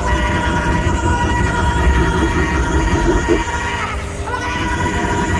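A woman sings loudly into microphones.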